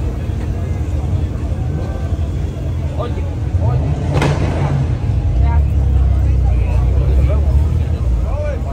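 Car engines rumble and rev close by.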